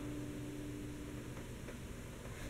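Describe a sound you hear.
An acoustic guitar chord rings and fades.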